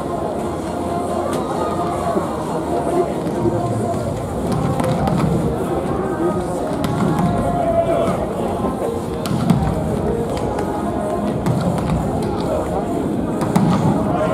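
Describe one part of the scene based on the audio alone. Volleyballs thud and smack sharply, echoing in a large hall.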